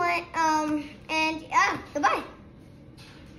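A young boy speaks excitedly close by.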